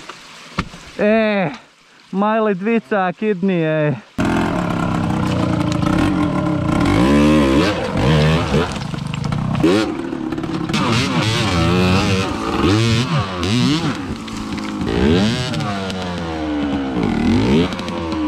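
A dirt bike engine revs hard and sputters close by.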